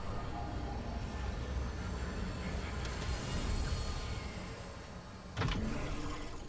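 A heavy metal door rumbles and grinds open.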